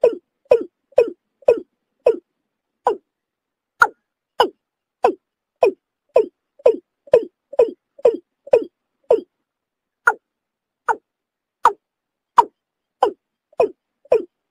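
A bird calls in short, harsh bursts, over and over.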